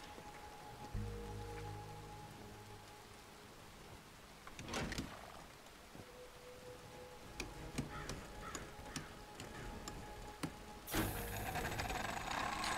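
A winch machine rumbles with a low hum.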